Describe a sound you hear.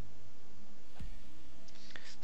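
A soft thud sounds as a blow lands.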